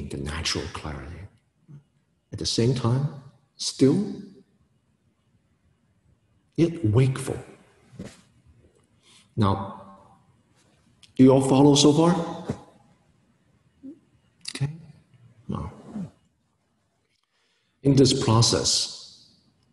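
A man speaks calmly and clearly into a nearby microphone, in short phrases with pauses.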